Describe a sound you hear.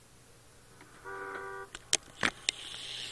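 A car engine starts.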